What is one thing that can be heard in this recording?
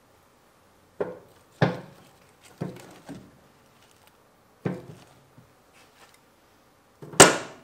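Split firewood knocks and thuds as it is laid into a wood stove.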